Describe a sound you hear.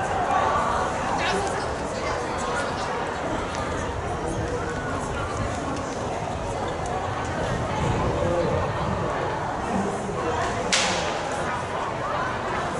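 A crowd of children chatters nearby outdoors.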